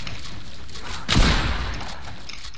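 A pickaxe strikes with a sharp crack.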